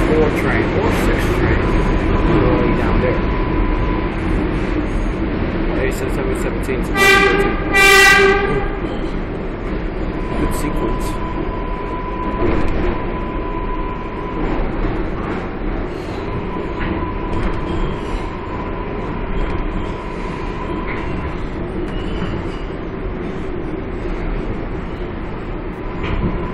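A train rumbles and rattles steadily along.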